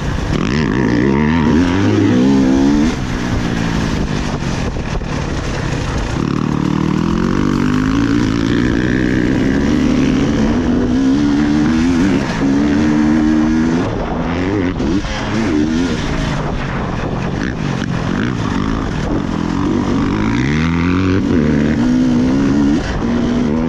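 Wind rushes past the rider.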